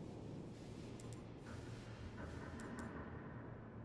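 A game menu gives short soft clicks.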